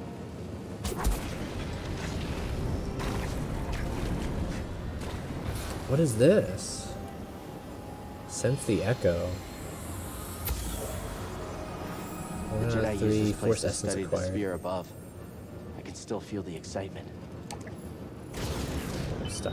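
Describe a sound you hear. A lightsaber ignites with a sharp hiss and hums.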